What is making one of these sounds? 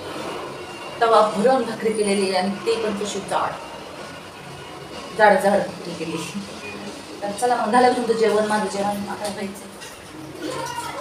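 A woman talks calmly and clearly close by.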